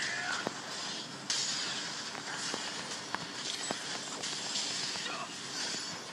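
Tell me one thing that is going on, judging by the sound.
Swords clash and spell effects whoosh and crackle in a game battle.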